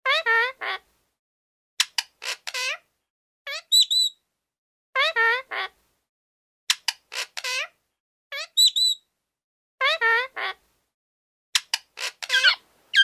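A small parrot gives short, shrill chirping calls in repeated bursts.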